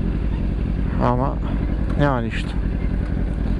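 A motorcycle engine revs up sharply twice, rising in pitch.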